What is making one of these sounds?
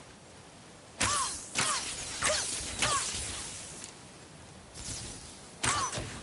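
Bright magical chimes ring out several times.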